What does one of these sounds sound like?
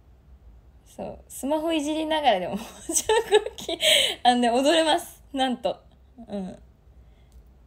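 A young woman speaks brightly and playfully into a microphone.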